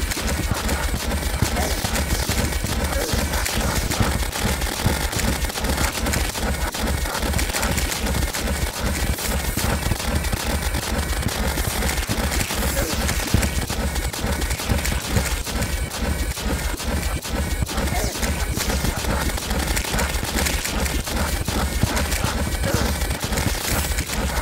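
Video game magic weapon blasts fire in rapid succession.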